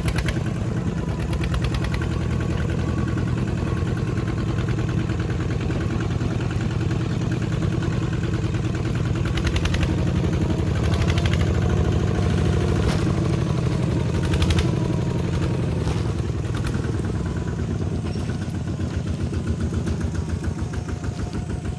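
A small engine chugs steadily and loudly close by.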